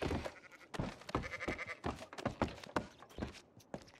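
Boots knock on wooden ladder rungs in a quick, uneven rhythm.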